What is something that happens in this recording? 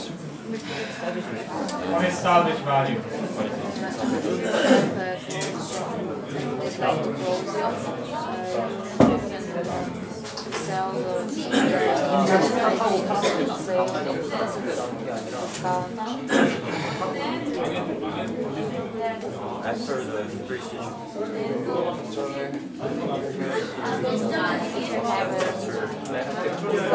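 A man speaks steadily and explains at length, close by.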